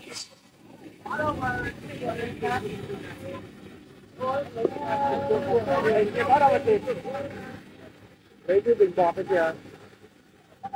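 A man speaks loudly outdoors, giving instructions.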